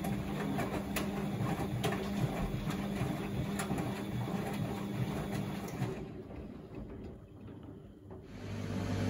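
A washing machine drum turns, with laundry tumbling and clicking.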